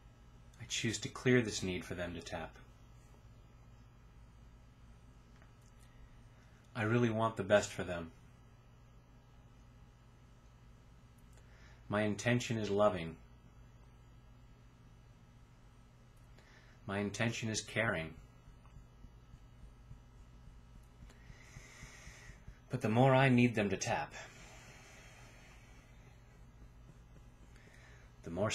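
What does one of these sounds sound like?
A middle-aged man speaks calmly in short bursts, close to the microphone, with long pauses between.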